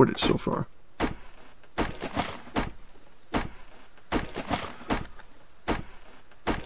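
An axe chops into a tree trunk with repeated knocks.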